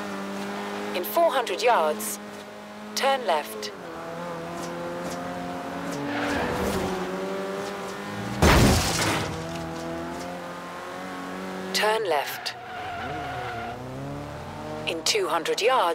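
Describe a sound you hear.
Tyres squeal sharply in short bursts through the corners.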